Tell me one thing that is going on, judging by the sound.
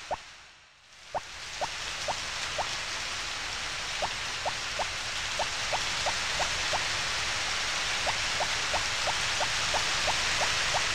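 Quick, light footsteps patter along at an even pace.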